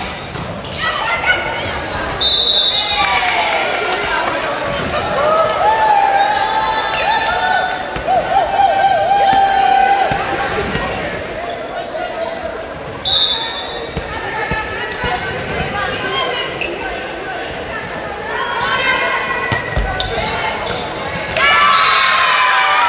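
A volleyball is struck with dull slaps.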